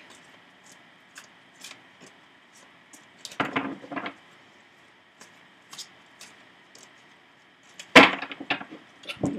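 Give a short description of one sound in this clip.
Paper cards rustle and flick as they are handled.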